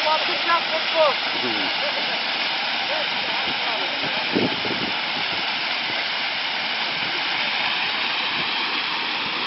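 Water gushes from a pipe and splashes heavily onto the ground nearby.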